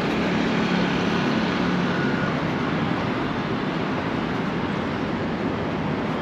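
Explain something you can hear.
A motorbike engine passes by.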